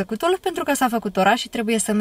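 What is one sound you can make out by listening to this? A young woman talks brightly close by.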